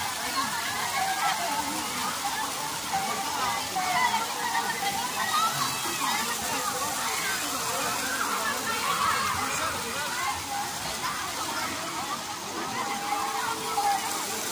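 Water splashes as people wade and play.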